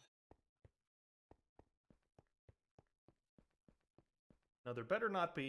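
Footsteps tap at a steady, quick pace on a hard floor.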